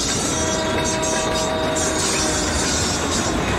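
A train horn blares close by.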